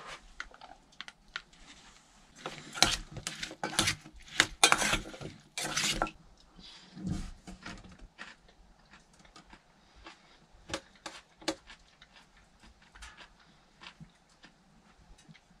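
A spoon clinks and scrapes in a metal bowl.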